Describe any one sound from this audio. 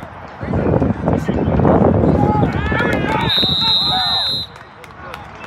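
Young players and spectators shout and cheer outdoors.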